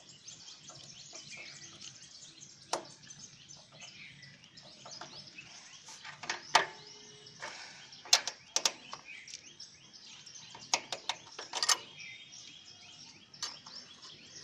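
A screwdriver scrapes and clicks against metal bolts.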